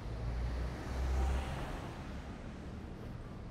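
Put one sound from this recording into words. A car drives past on a street.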